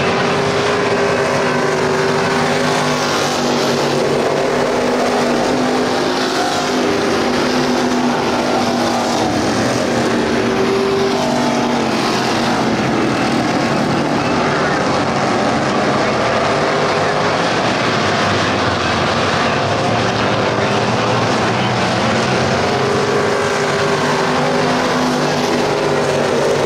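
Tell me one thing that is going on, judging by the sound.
Race car engines roar loudly around a dirt track, rising and falling in pitch as the cars pass.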